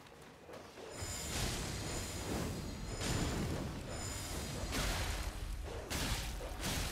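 A sword strikes an enemy in a fight.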